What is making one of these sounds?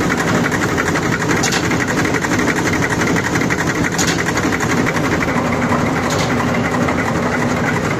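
Water sprays and splashes inside a machine.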